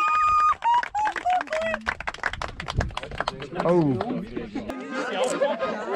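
A man speaks through a microphone outdoors to a group.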